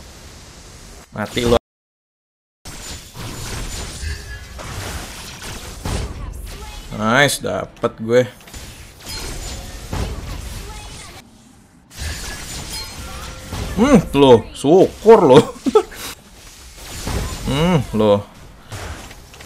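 A young man speaks excitedly into a close microphone.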